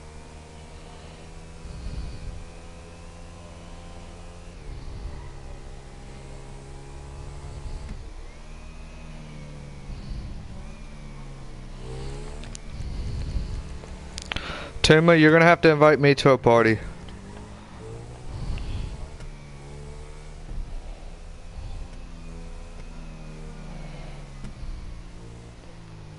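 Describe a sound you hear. A motorcycle engine hums steadily, rising and falling in pitch as it speeds along.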